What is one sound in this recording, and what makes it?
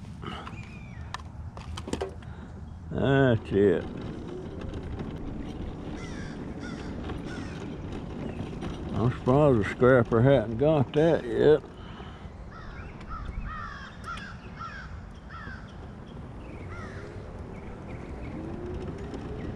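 Small tyres rumble over rough pavement.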